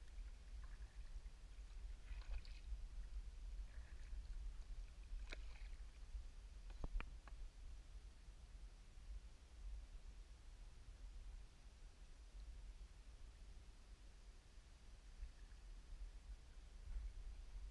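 Small waves lap against a kayak's hull.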